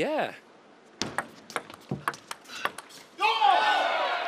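A ping-pong ball clicks back and forth off paddles and a table.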